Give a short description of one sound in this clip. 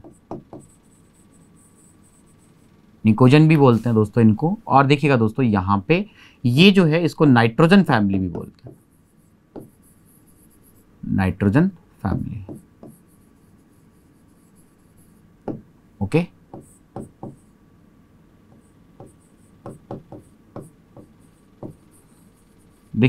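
A pen taps and squeaks against a board.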